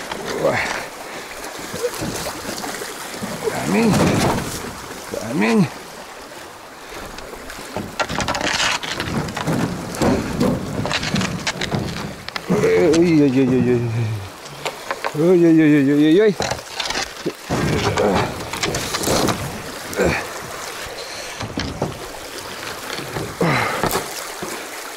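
A man speaks close by, calmly.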